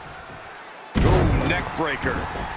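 A heavy body slams onto a wrestling ring mat with a loud thud.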